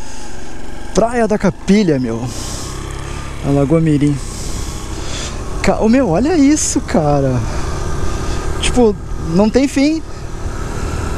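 A man talks with animation close by, over wind.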